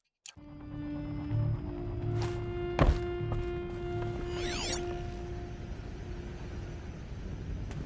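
A scanning device chimes and hums with steady tones.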